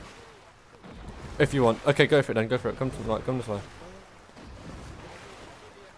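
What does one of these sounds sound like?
Water splashes as a character swims.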